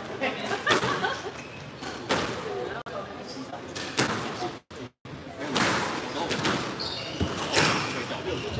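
A squash ball smacks against the walls, echoing in a hard-walled court.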